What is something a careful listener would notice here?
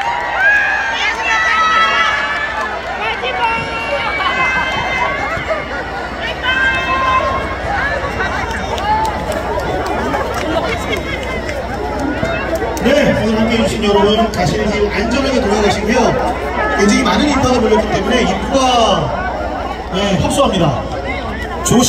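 A crowd of people chatters loudly nearby.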